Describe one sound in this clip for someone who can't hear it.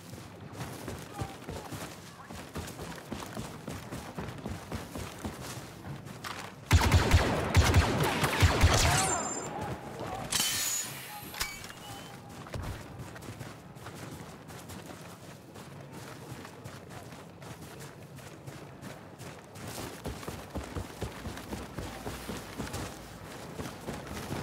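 Footsteps crunch on forest ground.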